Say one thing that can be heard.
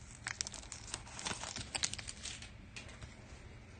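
A foil wrapper crinkles as a pack of cards is torn open.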